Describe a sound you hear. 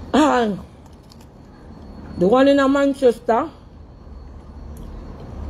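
A young woman chews food.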